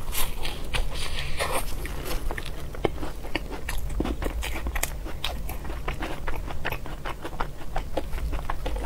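A young woman eats soft, creamy food close to a microphone with wet smacking and chewing sounds.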